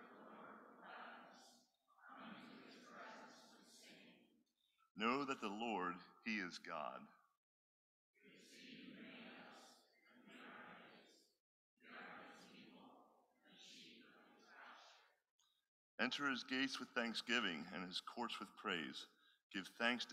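A man reads aloud through a microphone.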